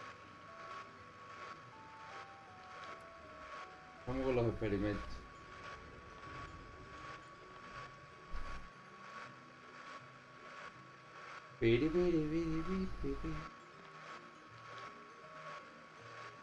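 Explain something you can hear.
A stand mixer whirs steadily.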